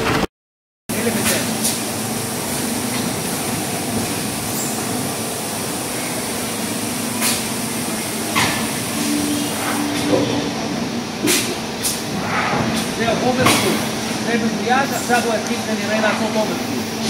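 A conveyor belt machine hums as it runs.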